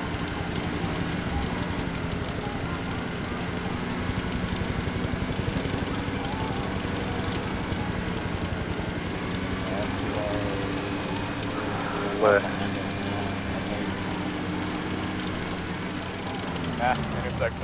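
Metal tracks clank and squeal as an armoured vehicle rolls over a dirt track.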